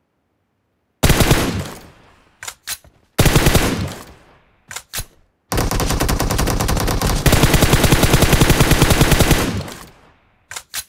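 A rifle fires loud bursts of rapid shots.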